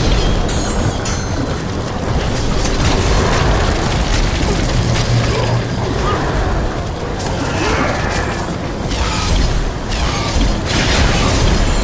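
Sharp fighting hits clash and thud.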